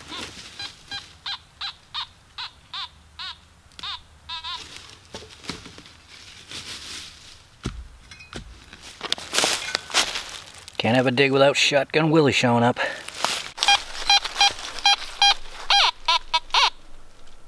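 A metal detector beeps in quick rising and falling tones.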